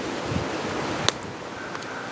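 A small plastic clip clicks once.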